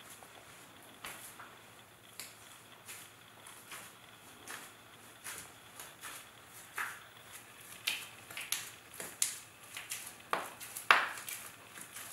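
Bare feet tread and squelch on soft wet clay.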